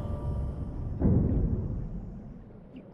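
A heavy splash hits water.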